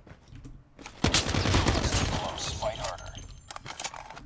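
An explosion booms loudly in a video game.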